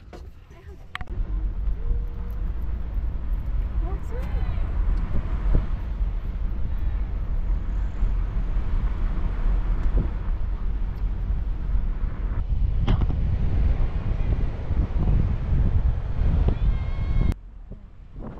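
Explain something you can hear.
Wind blows hard outdoors, rumbling against the microphone.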